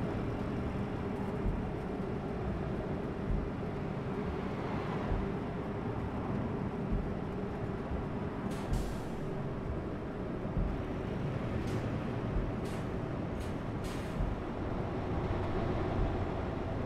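A heavy diesel truck engine drones while cruising.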